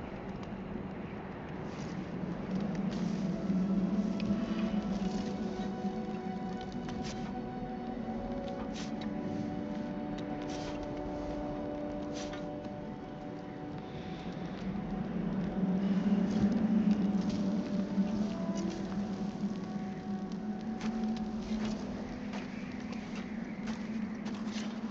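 A knife scrapes and shaves a wooden shaft in short strokes.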